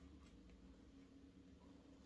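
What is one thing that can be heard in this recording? Chopsticks click against a plastic food tray.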